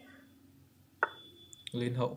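A chess piece clicks onto the board.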